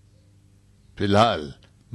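An older man speaks loudly and forcefully, close by.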